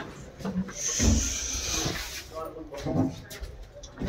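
Elevator doors slide open.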